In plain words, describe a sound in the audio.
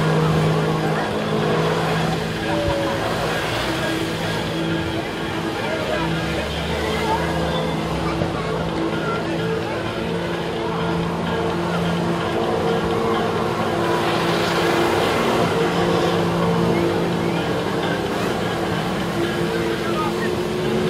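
Water jets roar and spray onto the water surface.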